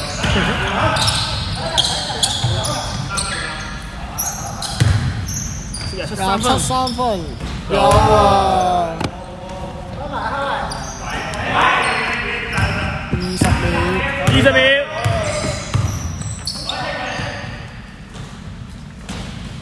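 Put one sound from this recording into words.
Young men shout across an echoing indoor hall.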